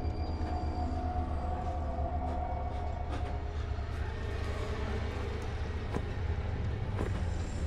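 A machine hums low and steadily.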